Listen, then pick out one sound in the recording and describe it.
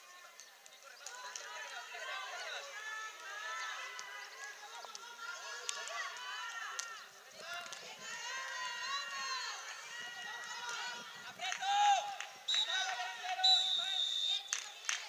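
Children shout and call out across an outdoor sports pitch.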